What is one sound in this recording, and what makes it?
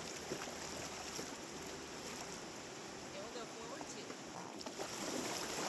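River water rushes and ripples steadily outdoors.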